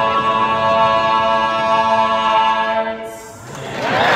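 A male vocal quartet sings a loud, sustained final chord in a large hall.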